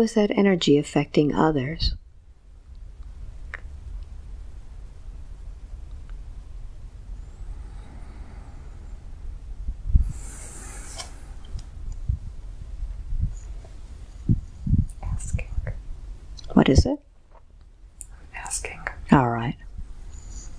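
A young man speaks softly close to a microphone.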